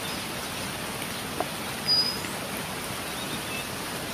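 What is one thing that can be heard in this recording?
A woman splashes water from a bucket.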